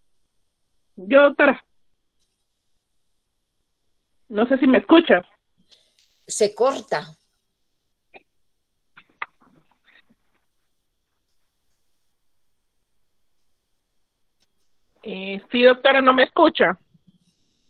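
A woman speaks briefly in short bursts over an online call.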